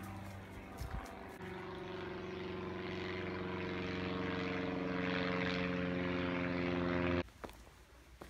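A propeller plane drones overhead, growing louder.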